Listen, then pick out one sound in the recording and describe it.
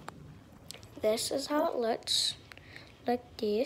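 A young girl talks close to the microphone with animation.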